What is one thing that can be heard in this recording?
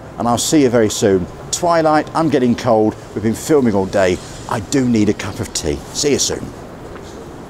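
A middle-aged man speaks calmly to the microphone, outdoors on a city street.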